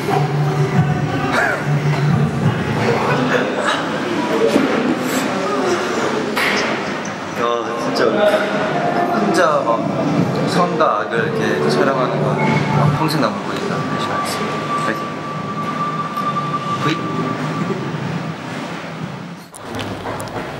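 A young man talks and laughs with animation close by.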